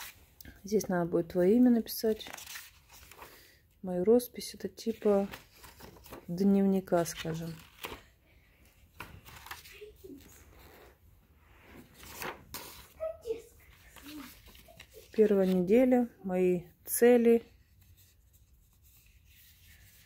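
Paper pages rustle as they are flipped close by.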